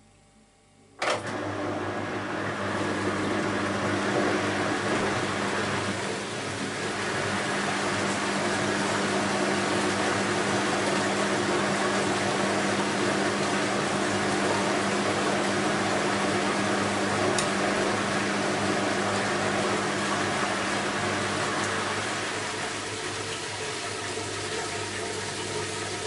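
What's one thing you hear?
A washing machine motor hums steadily, close by.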